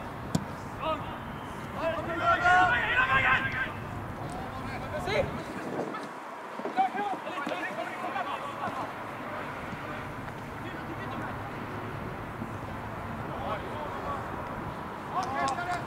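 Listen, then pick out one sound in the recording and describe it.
Young men shout to each other from a distance outdoors.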